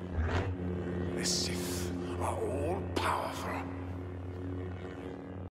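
A lightsaber hums steadily.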